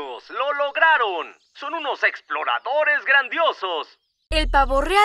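A cheerful man speaks with animation.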